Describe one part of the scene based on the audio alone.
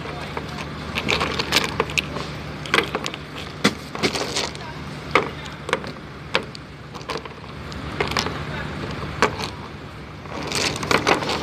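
Shells clack and click as a hand sets them down on a hard surface.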